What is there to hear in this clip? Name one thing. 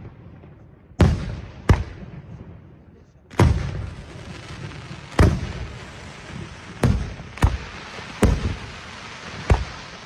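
Fireworks burst with loud booms that echo away.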